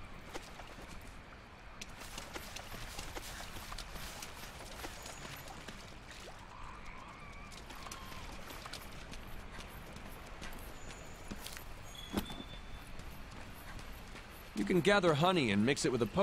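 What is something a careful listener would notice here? Footsteps crunch over grass and stones.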